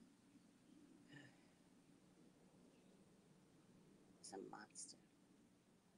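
A woman speaks briefly and quietly, close to a microphone.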